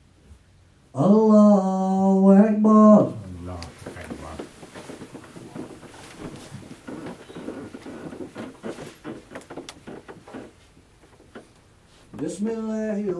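A man chants loudly in a long, drawn-out voice through a microphone.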